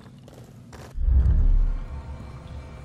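A body plunges into water with a heavy splash.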